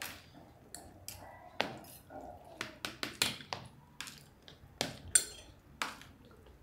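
Forks and spoons clink and scrape against plates.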